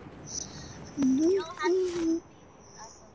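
A glider snaps open with a loud whoosh.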